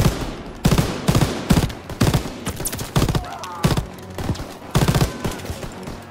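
A heavy machine gun fires loud bursts of shots.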